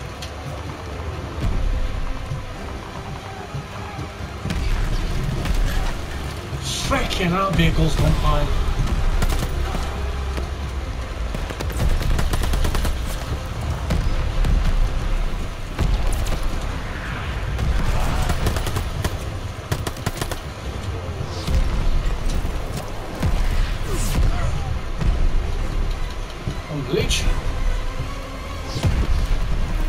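Explosions rumble and boom steadily.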